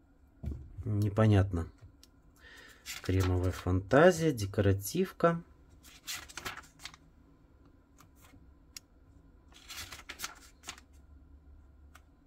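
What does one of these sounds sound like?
Glossy paper pages rustle and flap as they are turned.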